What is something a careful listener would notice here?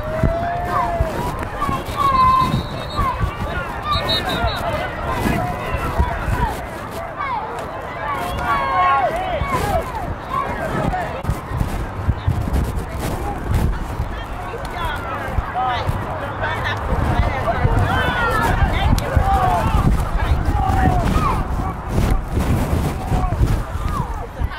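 Young football players' helmets and pads clash in a pileup.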